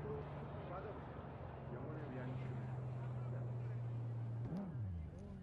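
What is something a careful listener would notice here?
A car engine hums steadily, then drops in pitch as the car slows.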